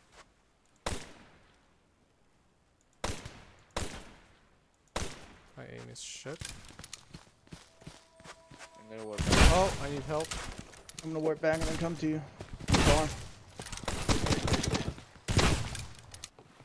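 Gunshots fire in sharp, echoing bursts.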